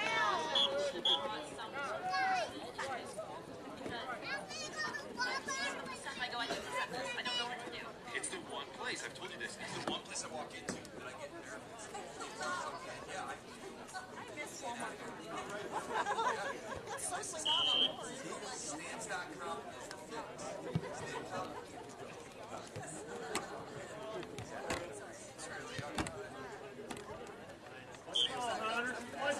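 Players and onlookers shout and call out across an open outdoor field.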